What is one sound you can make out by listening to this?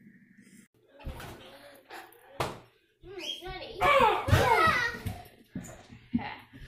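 A boy talks excitedly close by.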